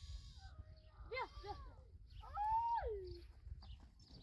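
A woman calls out outdoors.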